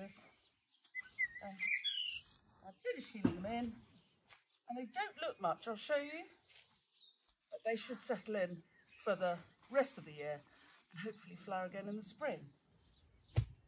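A middle-aged woman talks calmly at a distance outdoors.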